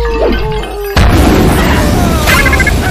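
Flames burst and roar with a loud whoosh.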